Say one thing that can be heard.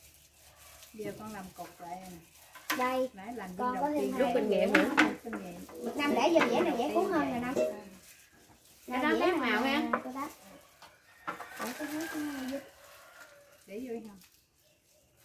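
Middle-aged women talk and chat close by.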